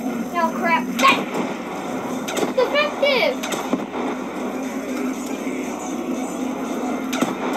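Gunfire from a video game cracks in short bursts.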